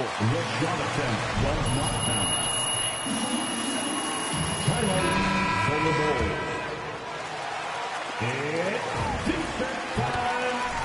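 A large arena crowd murmurs and cheers.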